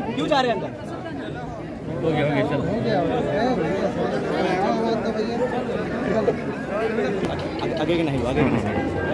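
A large crowd of men and women chatters and shouts loudly outdoors.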